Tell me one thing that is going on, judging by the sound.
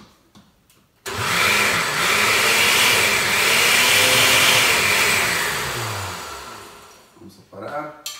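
A blender whirs loudly, then winds down.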